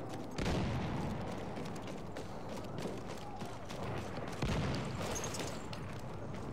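Explosions boom and rumble through an echoing tunnel.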